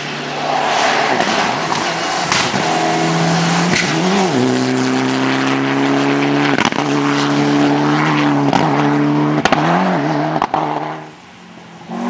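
Gravel sprays and crunches under a car's tyres.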